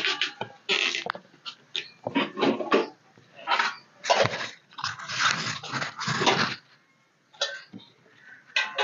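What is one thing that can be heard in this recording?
Metal pots clink and clatter.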